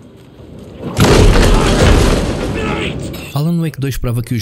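A man shouts loudly and menacingly.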